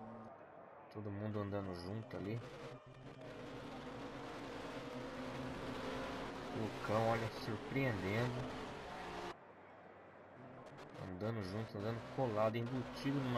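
Racing car engines roar and rise and fall in pitch as they shift gears.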